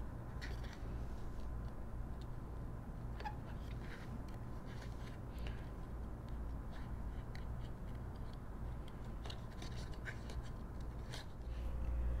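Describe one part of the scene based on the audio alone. Small scissors snip through thin paper with quiet, crisp cuts.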